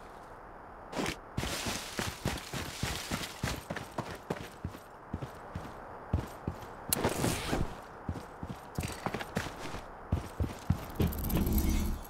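Footsteps tap quickly on hard paving.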